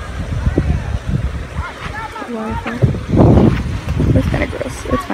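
A shallow creek trickles gently over stones.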